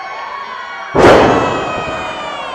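A wrestler crashes down onto a wrestling ring with a loud thud.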